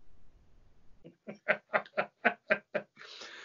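A man laughs in quick bursts over an online call.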